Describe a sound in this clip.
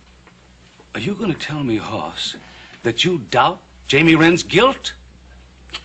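An older man speaks forcefully and angrily nearby.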